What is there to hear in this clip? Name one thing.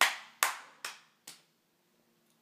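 A young boy claps his hands.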